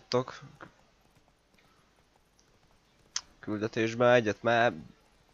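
A horse gallops with hooves thudding on a dirt path.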